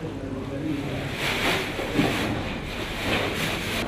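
Plastic bags rustle as they are handled.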